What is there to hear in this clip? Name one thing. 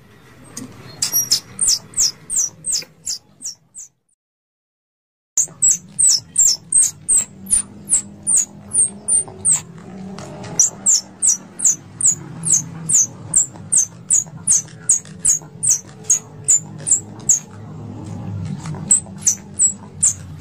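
A squirrel chirps in quick, sharp, high squeaks, over and over.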